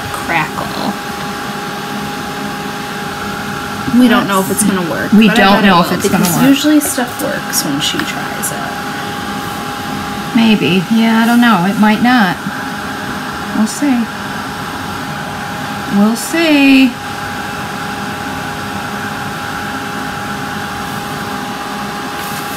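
A hair dryer blows with a steady whirring hum.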